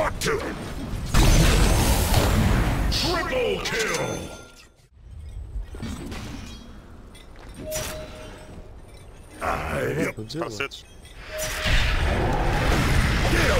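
Magic blasts and weapon strikes crash loudly in a battle.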